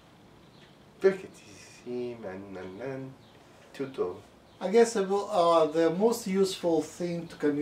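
A middle-aged man speaks nearby with animation.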